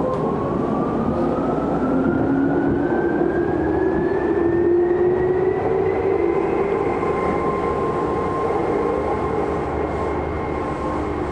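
Heard from inside the car, an electric commuter train's traction motors whine and rise in pitch as it pulls out of a station.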